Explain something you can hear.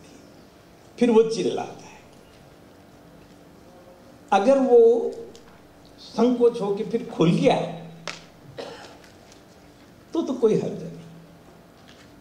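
An elderly man speaks into a microphone in short, emphatic bursts with pauses between them.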